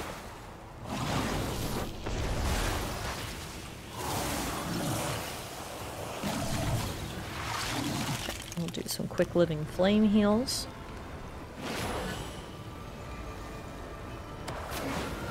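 Magic spells whoosh and crackle in short bursts.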